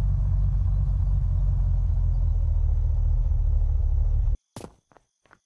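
A car engine rumbles steadily, then cuts off.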